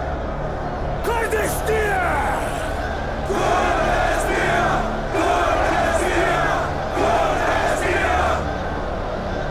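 A man shouts with passion to a crowd.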